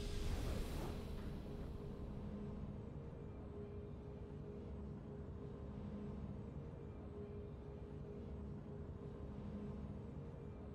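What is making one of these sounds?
Soft triumphant music plays quietly.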